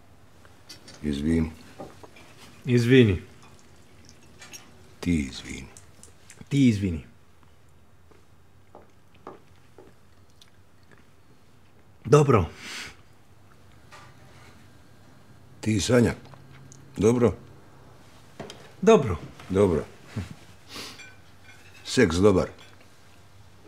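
A middle-aged man speaks calmly and quietly nearby.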